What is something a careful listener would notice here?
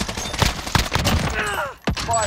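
Rapid gunshots fire close by.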